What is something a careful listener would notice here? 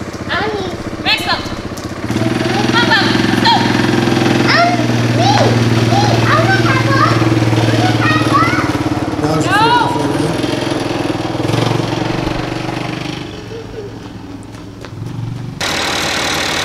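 An all-terrain vehicle engine runs and revs nearby.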